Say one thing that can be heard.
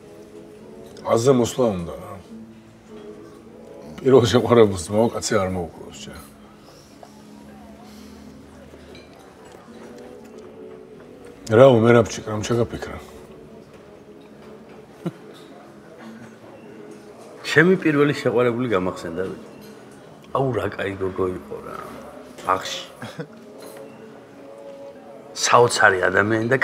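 Men talk calmly at a table, heard close by, in bursts with pauses.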